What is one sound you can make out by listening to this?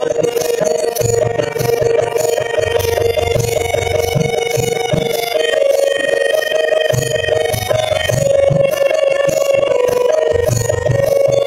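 A hand drum beats a lively rhythm.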